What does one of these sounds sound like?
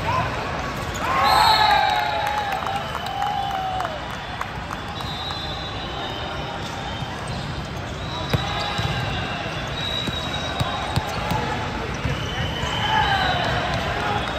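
Young men shout and call out in a large echoing hall.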